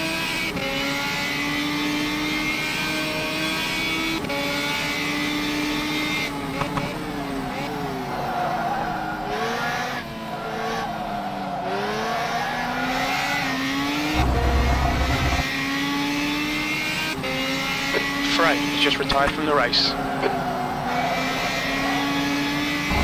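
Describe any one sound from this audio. A race car engine roars steadily, its pitch dropping under braking and rising through the gears.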